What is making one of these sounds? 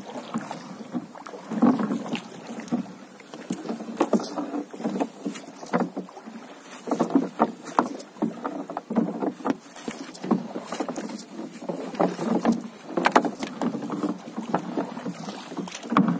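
A paddle splashes and dips in water.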